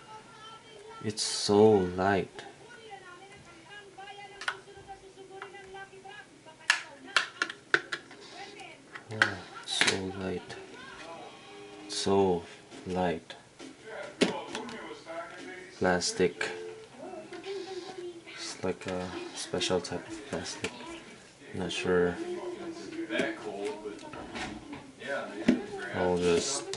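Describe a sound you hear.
Plastic parts of a phone click and snap as they are handled up close.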